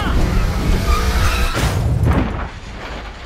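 A race car skids and slams into a wall with a loud crash.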